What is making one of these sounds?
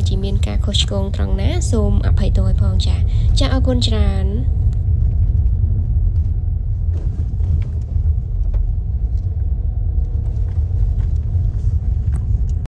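A vehicle engine rumbles steadily while driving along a dirt road.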